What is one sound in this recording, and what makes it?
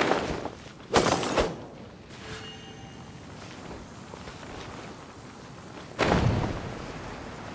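A strong gust of wind whooshes upward.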